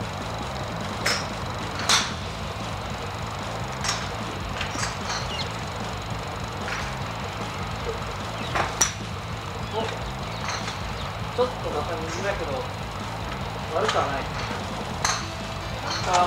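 Golf clubs strike balls with sharp clicks nearby.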